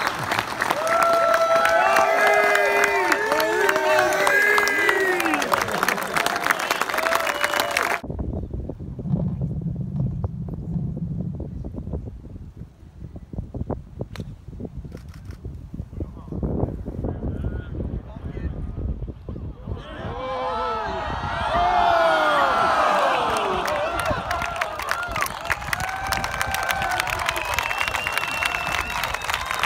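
A crowd cheers and whoops outdoors.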